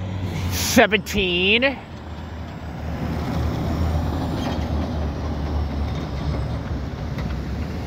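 A heavy log truck's diesel engine rumbles as it rolls past close by.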